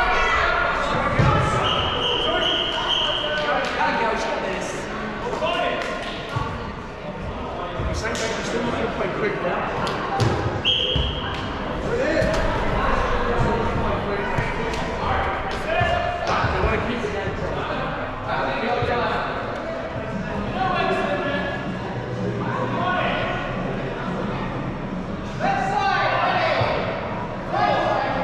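Players shout and call out to each other in a large echoing indoor hall.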